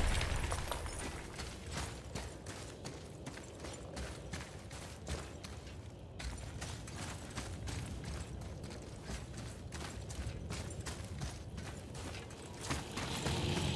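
Heavy footsteps crunch steadily over snow and stones.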